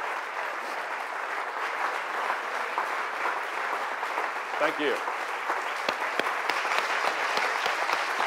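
An audience applauds steadily in a large room.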